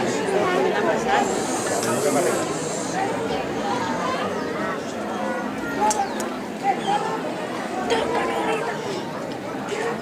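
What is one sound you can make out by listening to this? Children talk quietly close by.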